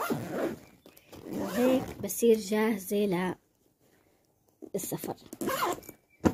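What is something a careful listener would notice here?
Nylon fabric rustles and crinkles as it is handled.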